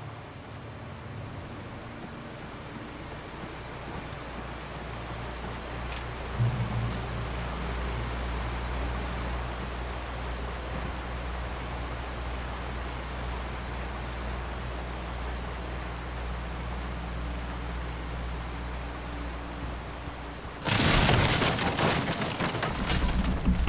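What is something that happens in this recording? Wind rumbles steadily.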